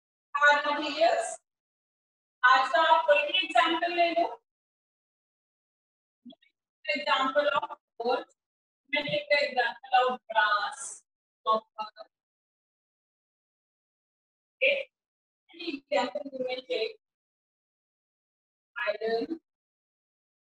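A woman speaks calmly in short bursts with pauses, heard through a microphone.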